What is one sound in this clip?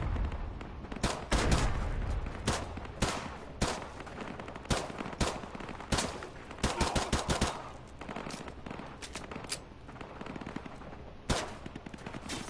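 Gunshots fire in quick bursts, echoing in a large hall.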